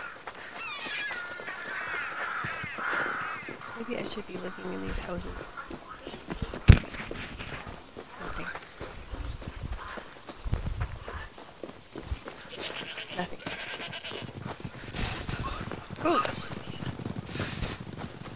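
Footsteps run over gravel and grass.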